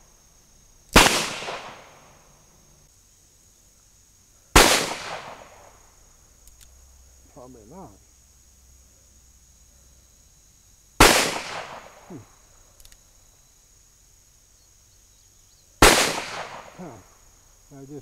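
A revolver fires loud shots outdoors, each echoing away.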